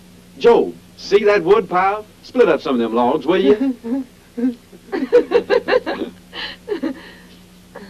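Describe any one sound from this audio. A man laughs heartily.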